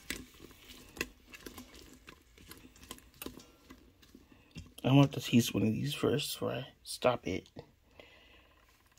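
A plastic spatula scrapes and clicks against a metal pot while stirring beans.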